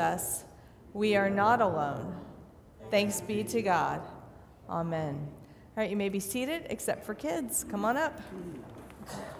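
A middle-aged woman speaks clearly through a microphone in an echoing hall.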